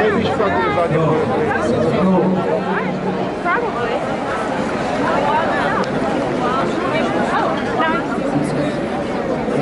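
A large crowd chatters loudly outdoors, with many men and women talking and calling out at once.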